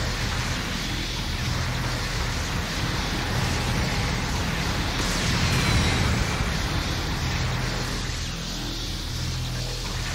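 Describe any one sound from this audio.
A robot's thrusters roar steadily as it flies.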